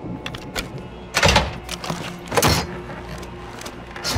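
A door latch clicks.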